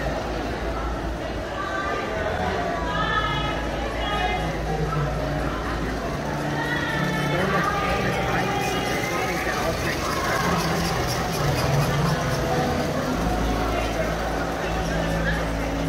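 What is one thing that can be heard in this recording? People chatter nearby in a large, echoing hall.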